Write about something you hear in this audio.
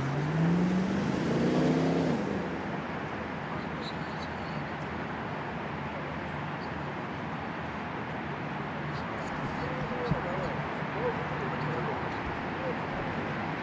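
A small outdoor crowd murmurs steadily.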